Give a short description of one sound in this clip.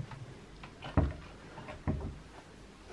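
A wooden cabinet door thuds shut.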